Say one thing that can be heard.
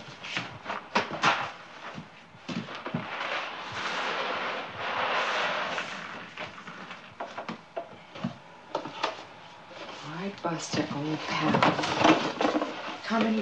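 Paper and cardboard rustle and crinkle in someone's hands.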